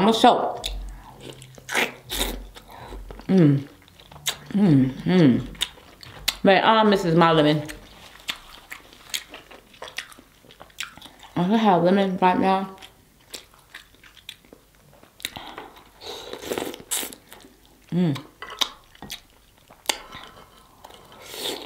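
A young woman eats crab legs with loud, close-up chewing and slurping.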